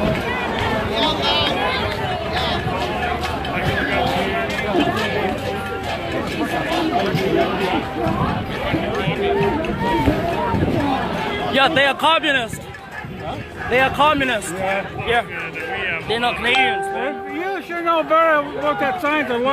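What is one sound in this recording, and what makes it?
A crowd of protesters chatters and calls out outdoors.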